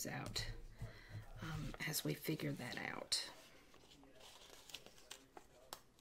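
Paper rustles and crinkles as a sticker sheet is handled.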